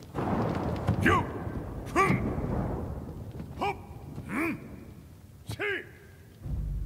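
Blows land with sharp thuds.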